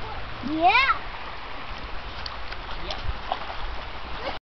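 A child's feet splash in shallow water.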